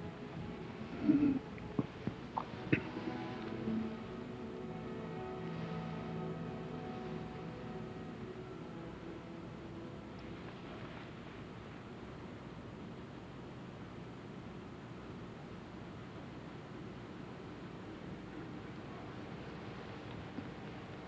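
A large crowd murmurs softly in a large echoing hall.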